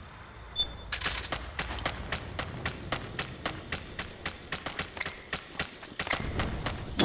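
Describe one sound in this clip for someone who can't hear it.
Footsteps crunch quickly on gritty ground.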